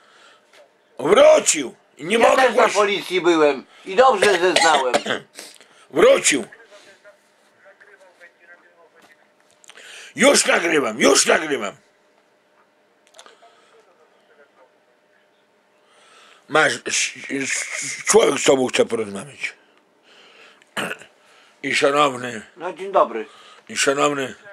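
A middle-aged man talks on a phone close by, with animation, in bursts with pauses.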